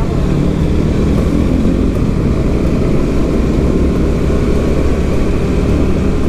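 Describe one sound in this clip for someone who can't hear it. Wind buffets loudly as the motorcycle rides along.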